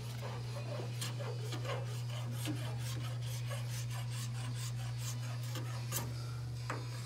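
A tool taps repeatedly on thin sheet metal.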